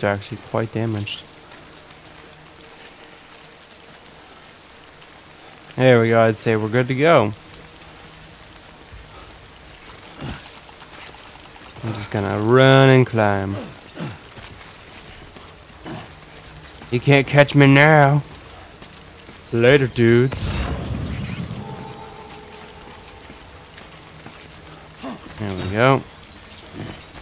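A young man talks into a close microphone in short, animated bursts.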